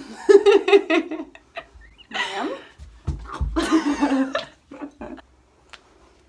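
A young woman laughs close up.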